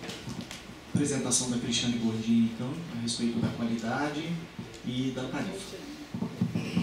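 A man speaks calmly into a microphone in a large echoing room.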